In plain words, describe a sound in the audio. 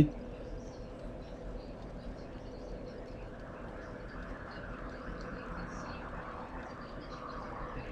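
A bonfire crackles steadily.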